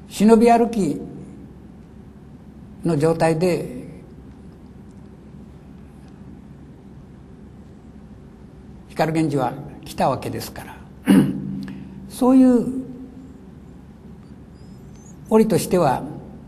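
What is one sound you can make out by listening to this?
An elderly man reads aloud slowly and calmly from close by, with long pauses.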